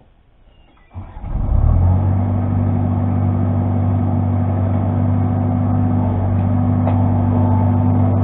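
An engine starts up close and then runs with a steady drone.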